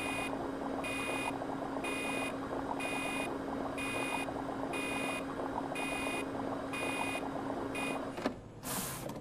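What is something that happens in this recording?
An electronic alarm beeps in a steady, even rhythm.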